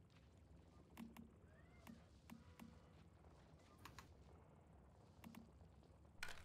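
Short interface clicks sound as menu items are selected.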